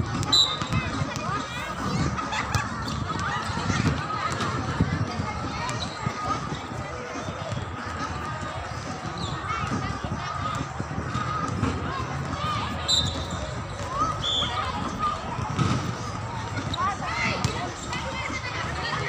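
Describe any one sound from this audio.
Young women call out and chatter across an outdoor court.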